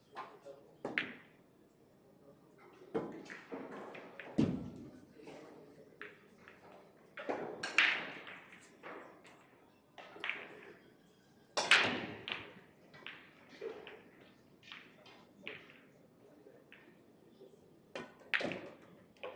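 A cue tip strikes a pool ball.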